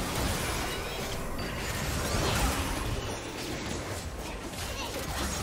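Spell effects crackle and burst in a video game battle.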